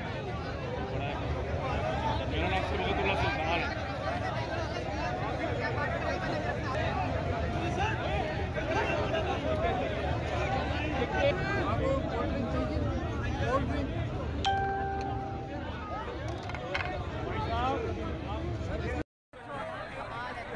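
A crowd of men and women talk over one another close by.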